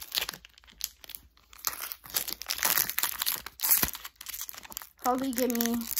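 Foil wrapping crinkles and rustles as it is handled.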